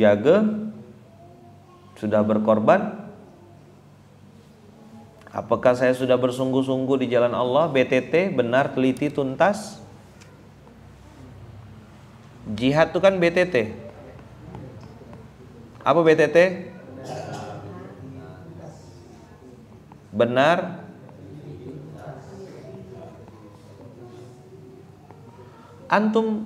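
A man speaks slowly and earnestly into a microphone, with long pauses between phrases.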